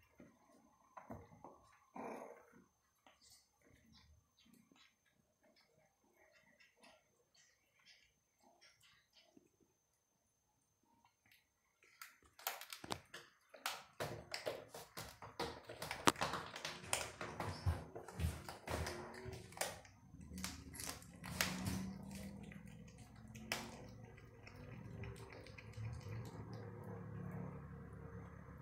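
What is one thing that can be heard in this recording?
A kitten crunches and tears at its prey with wet chewing sounds, close by.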